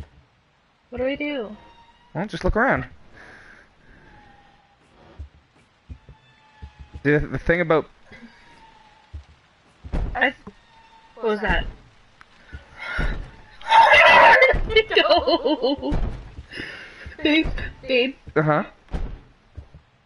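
A young woman talks and exclaims with animation close to a microphone.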